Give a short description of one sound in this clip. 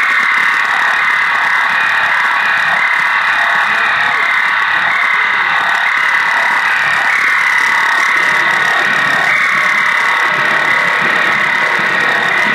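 Loud distorted band music plays through amplifiers.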